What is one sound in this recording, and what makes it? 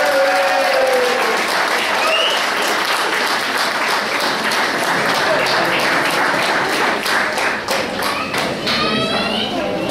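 A crowd of men and women chatters loudly nearby.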